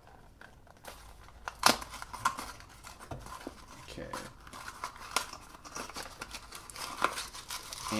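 A cardboard box is torn open.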